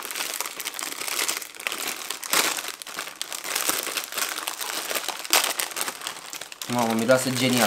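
A plastic bag crinkles and rustles as it is pulled open.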